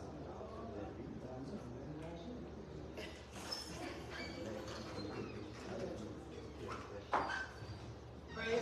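A woman speaks steadily into a microphone, heard through a loudspeaker in a large echoing room.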